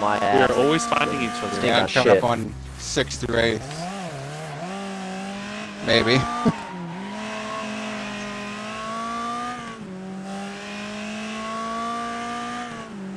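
A racing car engine drones and revs up and down throughout.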